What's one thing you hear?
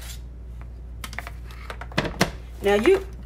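A plastic container knocks against a hard surface.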